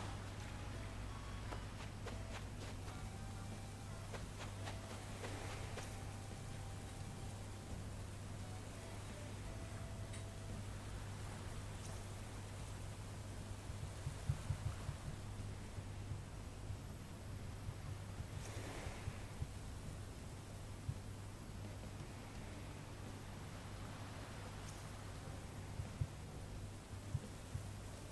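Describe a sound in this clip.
A young woman talks calmly and close to a microphone.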